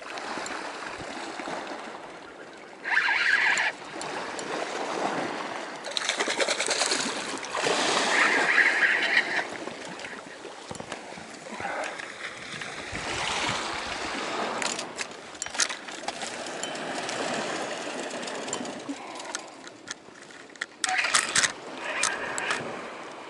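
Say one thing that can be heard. Waves wash against rocks below.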